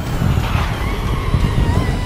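Tyres squeal as a racing car corners.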